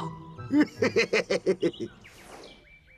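A man speaks in an animated cartoon voice.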